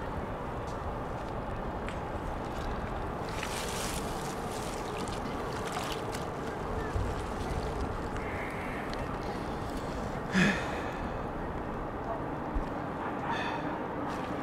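Shallow water splashes and swishes as bodies roll through it.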